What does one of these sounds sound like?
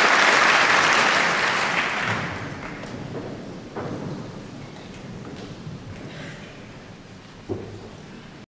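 Performers shuffle and sit down with soft knocks in a large echoing hall.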